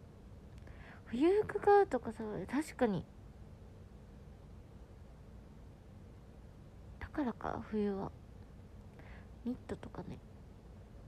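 A young woman speaks softly and close, her voice muffled behind her hand.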